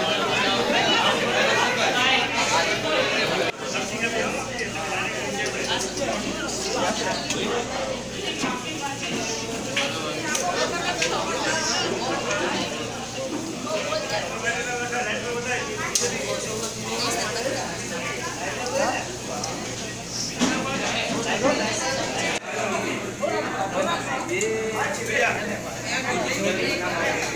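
Serving spoons clink against metal trays.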